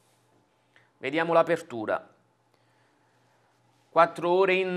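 A man speaks calmly and clearly into a close microphone.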